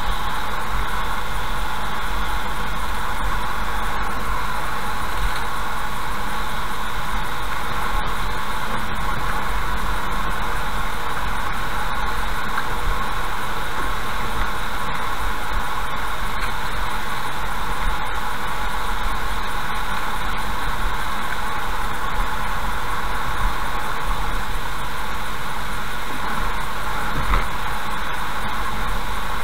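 A car drives steadily along a road with a constant rumble of tyres.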